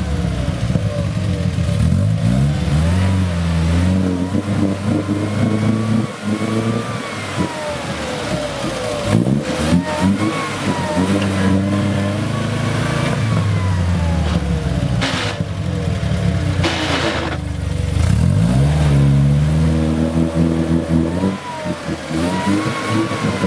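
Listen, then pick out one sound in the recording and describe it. An off-road vehicle's engine revs up and down, straining loudly.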